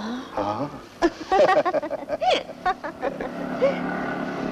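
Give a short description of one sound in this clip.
A young woman laughs softly nearby.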